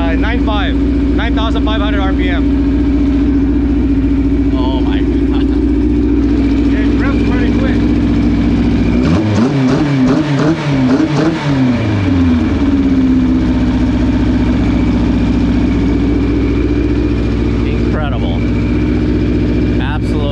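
An engine idles steadily throughout.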